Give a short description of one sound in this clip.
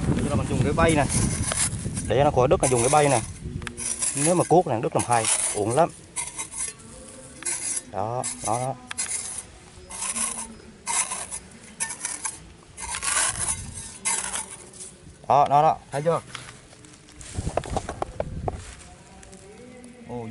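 A small trowel scrapes and digs into dry soil.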